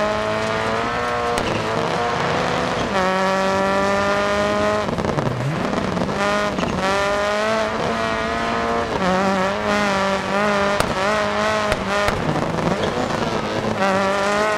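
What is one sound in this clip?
A turbocharged flat-four rally car engine revs hard at full throttle and shifts through its gears.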